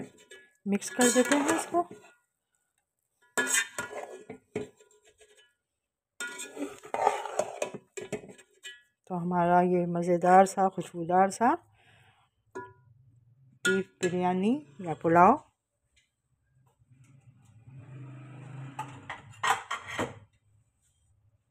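A metal spoon scrapes and clinks against a steel pot while stirring rice.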